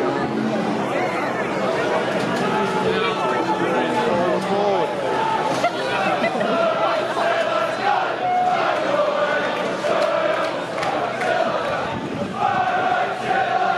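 A large crowd of fans sings and chants loudly in an open stadium.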